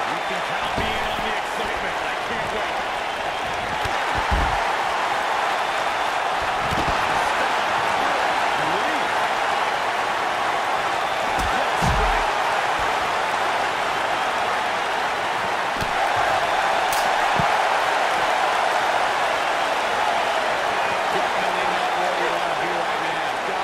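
A large crowd roars and cheers steadily in an echoing arena.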